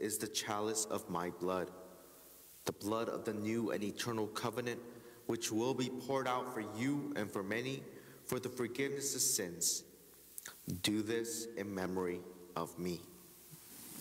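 A man chants a prayer aloud, heard through a microphone in an echoing room.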